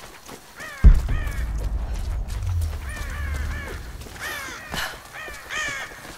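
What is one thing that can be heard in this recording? Footsteps crunch through undergrowth.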